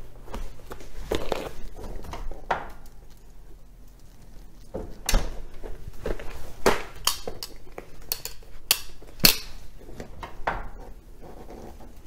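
Dishes and utensils clatter and knock.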